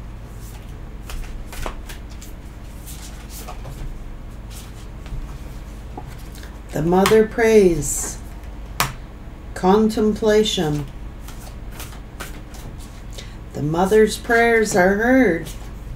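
Cards shuffle and tap softly.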